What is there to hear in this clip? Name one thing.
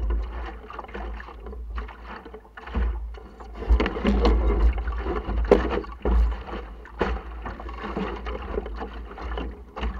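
Water splashes and slaps against a small boat's hull.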